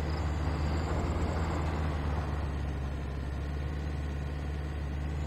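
An off-road vehicle's engine hums steadily as it drives.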